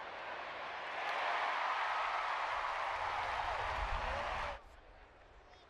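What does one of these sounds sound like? A large crowd cheers loudly, then quickly quiets.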